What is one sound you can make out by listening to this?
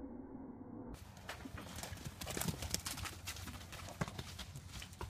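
A horse's hooves thud on soft muddy ground.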